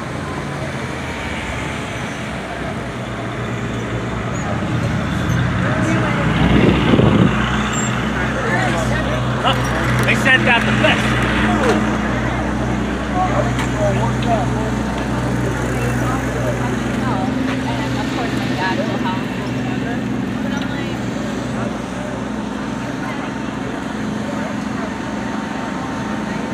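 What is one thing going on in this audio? A crowd of men and women talk outdoors on a busy street.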